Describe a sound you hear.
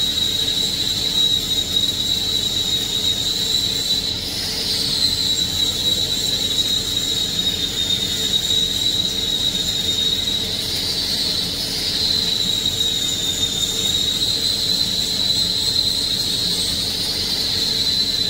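An electric welding arc hisses and crackles steadily.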